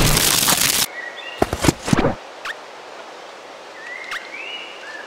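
Short electronic chimes and blips sound now and then.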